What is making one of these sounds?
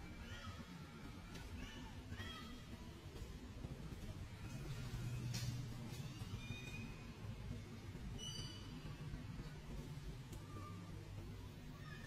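A baby monkey squeaks and cries in high, short calls.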